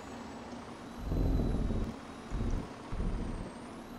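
A truck engine rumbles low.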